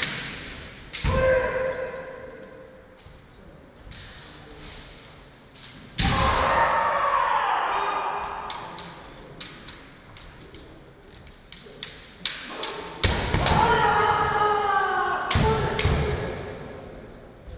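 Young men shout sharply and loudly in a large echoing hall.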